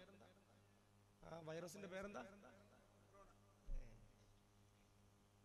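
A man speaks with emphasis into a microphone, heard through a loudspeaker with a slight echo.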